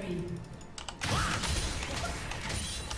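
Video game combat effects burst and clash loudly.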